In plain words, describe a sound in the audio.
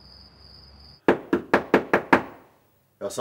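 A fist knocks several times on a wooden door.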